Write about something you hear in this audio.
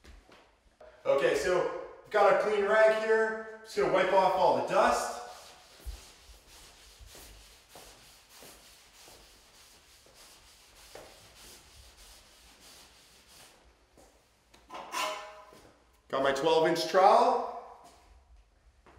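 A man talks calmly to the listener, close by.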